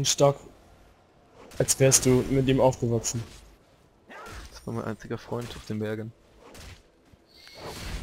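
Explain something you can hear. Game spells zap and burst in a fight.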